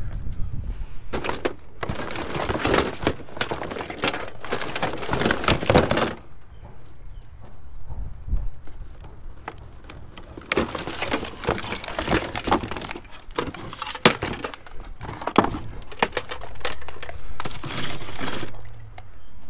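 Cables rustle and rattle as a hand pulls them from a cardboard box.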